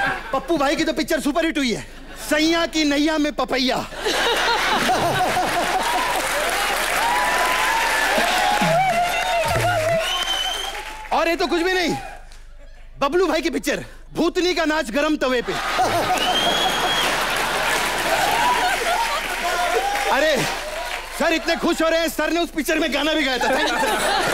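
A man speaks loudly and with animation into a microphone on a stage.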